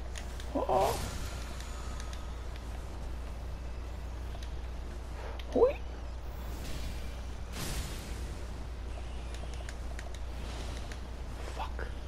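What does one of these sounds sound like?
Large rats squeal sharply.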